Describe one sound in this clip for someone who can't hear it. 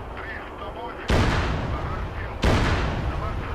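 Anti-aircraft guns fire bursts of shots.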